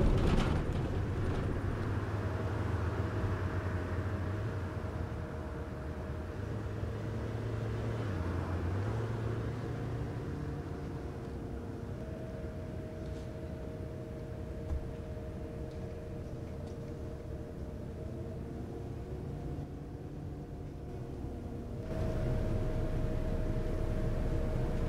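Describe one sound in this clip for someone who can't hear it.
A bus engine hums and rumbles steadily, rising as it pulls away.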